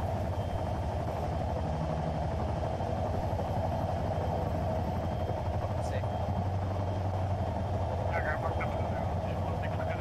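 A helicopter's rotor thumps steadily nearby.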